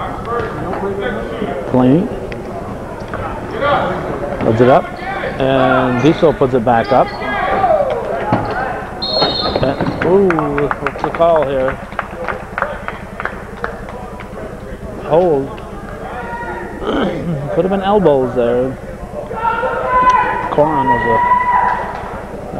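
Men and boys shout and cheer in an echoing gym.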